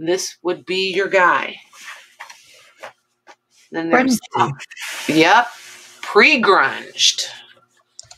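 A cloth rustles softly as hands fold and smooth it.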